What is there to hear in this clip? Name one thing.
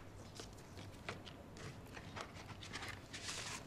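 Paper rustles as an envelope is opened.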